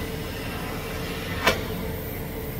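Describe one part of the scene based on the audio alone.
A welding arc crackles and buzzes.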